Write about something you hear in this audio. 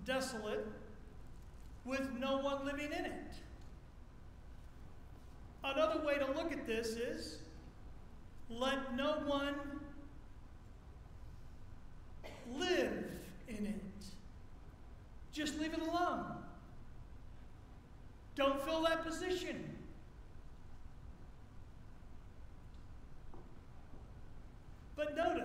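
A middle-aged man speaks calmly through a microphone, with long pauses.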